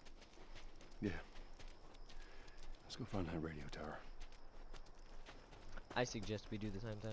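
Footsteps tread on grass and dirt.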